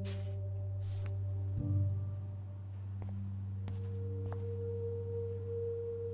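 Soft footsteps tread across a hard floor.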